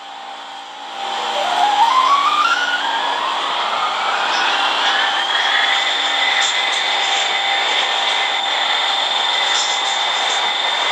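A train motor whines and rises steadily in pitch as the train speeds up, then holds a steady pitch.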